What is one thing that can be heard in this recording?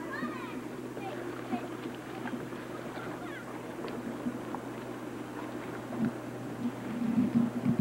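Water splashes softly as a paddle dips into a lake.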